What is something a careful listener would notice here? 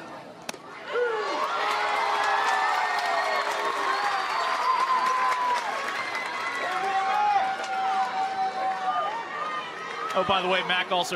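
A crowd cheers and shouts in a stadium.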